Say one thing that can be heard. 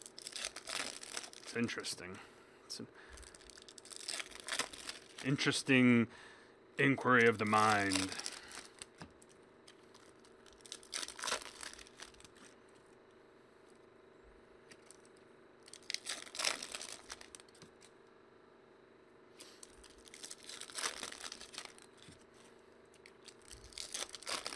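Plastic wrappers crinkle and rustle as hands tear open card packs.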